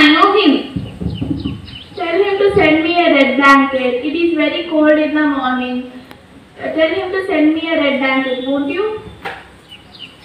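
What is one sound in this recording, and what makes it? A girl speaks clearly into a microphone, heard through a loudspeaker outdoors.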